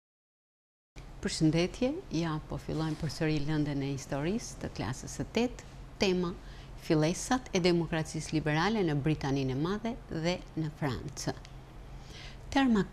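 A middle-aged woman speaks calmly and clearly into a microphone.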